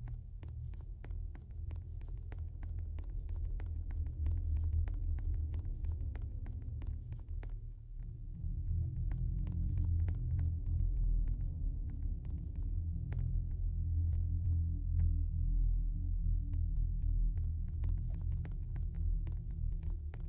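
Quick footsteps patter on a wooden floor.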